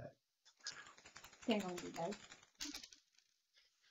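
Dice rattle and tumble onto a tray.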